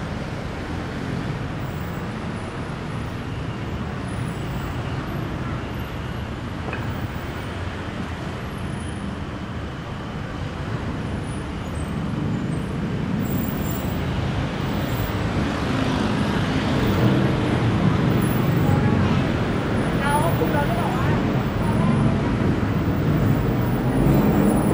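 Street traffic hums steadily nearby outdoors.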